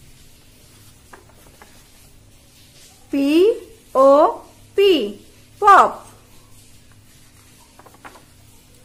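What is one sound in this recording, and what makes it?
Stiff paper rustles and flaps as a folded card is turned.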